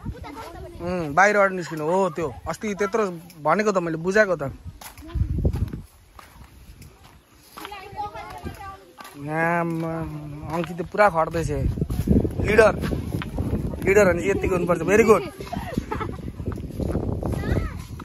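Young girls chatter and laugh close by, outdoors.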